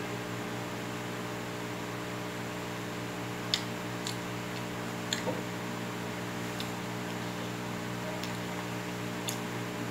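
An electric fan hums steadily nearby.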